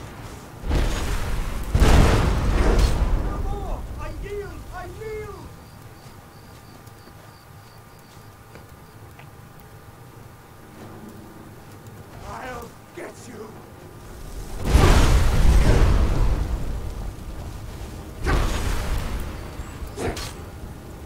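Fire spells roar and burst in loud blasts.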